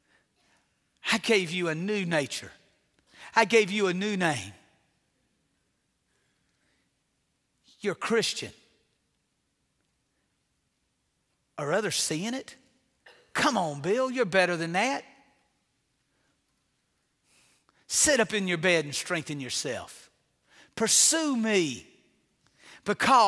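A middle-aged man speaks with emphasis and long pauses, heard through a microphone in a large room.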